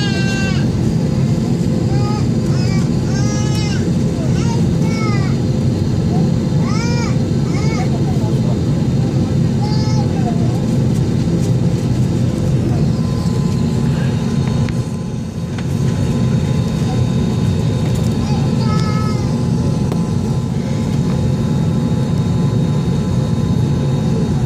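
A jet aircraft's engines hum and rumble steadily, heard from inside the cabin.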